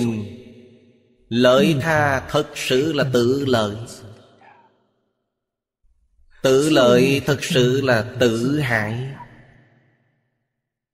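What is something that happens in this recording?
An elderly man speaks calmly and warmly into a close microphone, pausing between phrases.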